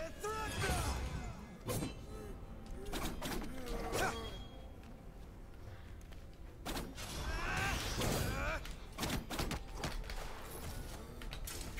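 Swords clash and swish in quick fighting strikes.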